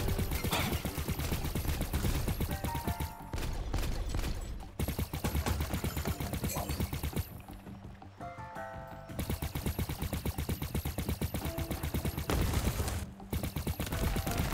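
Shots from a game weapon zap and burst in quick bursts.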